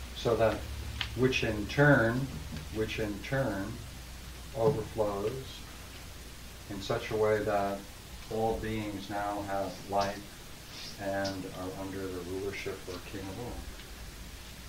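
An older man speaks calmly to a room.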